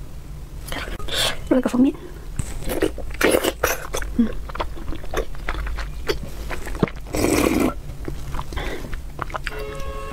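A young woman slurps and chews wet food close to a microphone.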